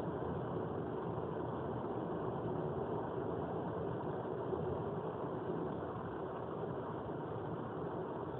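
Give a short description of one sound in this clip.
A car drives steadily along a highway, heard from inside with a low road rumble.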